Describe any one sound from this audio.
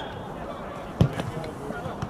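A ball is kicked with a dull thud.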